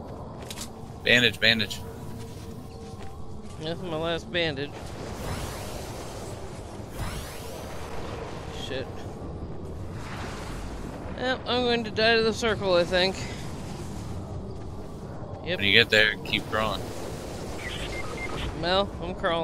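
A young man talks with animation through a microphone, in short bursts.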